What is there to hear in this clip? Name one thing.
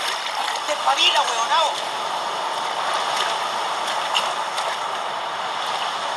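Water splashes as a man wades through the surf.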